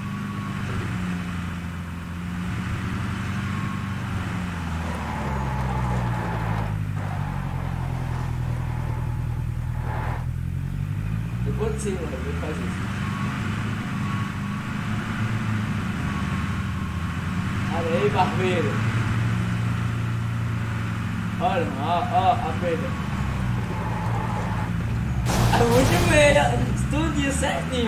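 A pickup truck engine drones, rising and falling in pitch as it drives.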